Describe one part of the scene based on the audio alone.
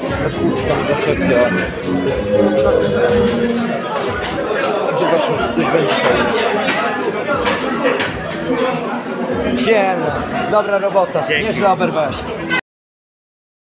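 A crowd chatters loudly in a busy, echoing room.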